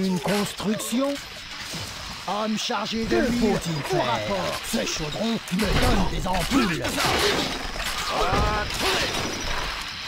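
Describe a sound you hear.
A young man talks through a microphone.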